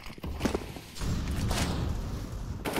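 A smoke grenade hisses as it spreads.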